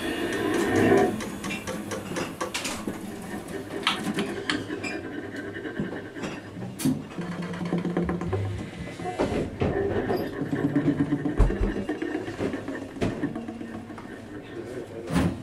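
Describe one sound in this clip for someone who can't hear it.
A drummer plays a drum kit with sticks.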